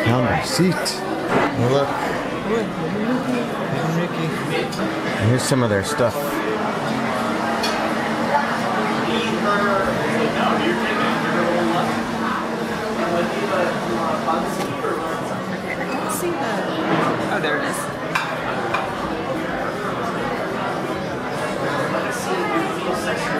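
Men and women chat at nearby tables.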